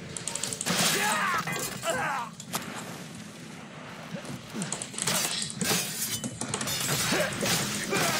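Swords clash.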